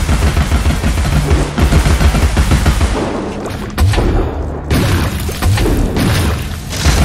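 Rumbling impacts thud and crash.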